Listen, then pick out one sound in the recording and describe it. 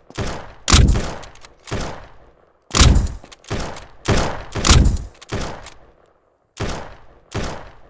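A pickaxe strikes rock in repeated heavy blows.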